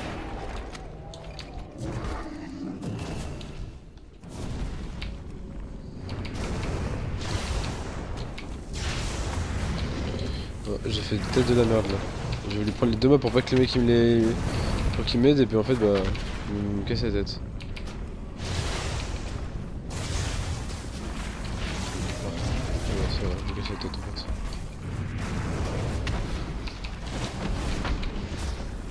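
Fantasy battle sound effects of spells and weapon blows crash and whoosh.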